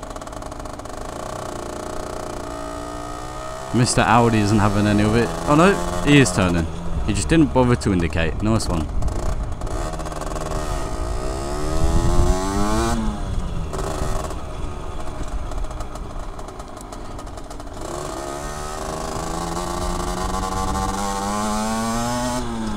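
A motorcycle engine hums up close, revving up and dropping as gears change.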